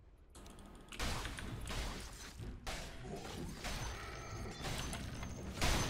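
Game combat effects clash and crackle loudly.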